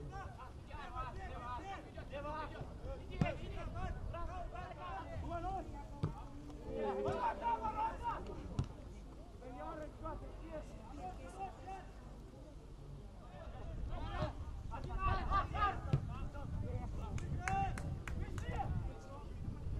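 Young male players shout and call to one another across an open field.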